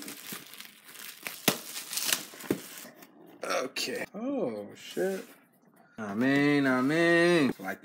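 A cardboard box flap is lifted open.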